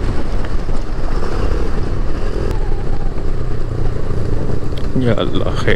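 Wind rumbles loudly against a moving motorcycle.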